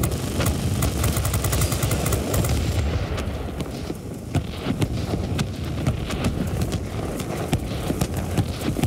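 A propeller plane's engine roars steadily.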